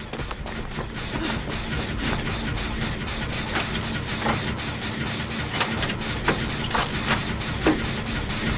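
A generator clanks and rattles as it is being repaired.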